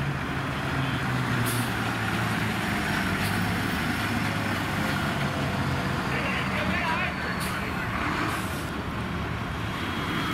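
A fire engine rumbles past close by.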